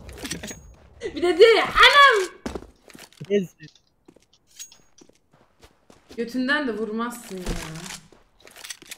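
A young woman speaks and laughs with animation close to a microphone.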